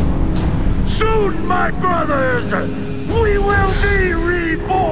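A man speaks slowly in a low, menacing voice.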